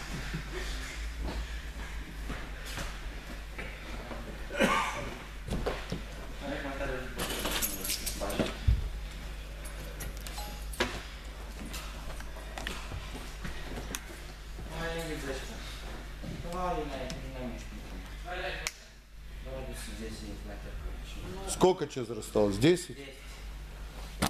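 Young men talk nearby in an echoing hall.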